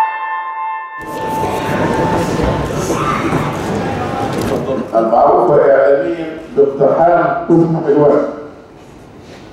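A middle-aged man speaks formally into microphones in a large echoing room.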